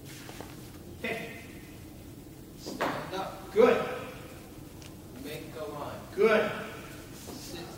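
An elderly man speaks in bursts in a large, echoing room.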